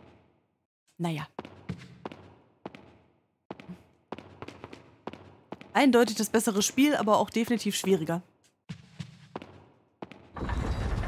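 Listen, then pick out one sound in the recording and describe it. Footsteps tap on a hard floor in an echoing hall.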